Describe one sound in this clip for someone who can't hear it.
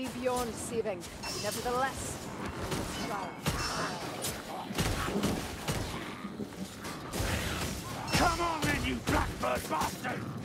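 A heavy war hammer thuds and clangs against enemies.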